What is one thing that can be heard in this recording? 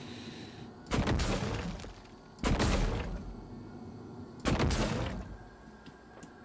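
Gunshots boom in loud bursts.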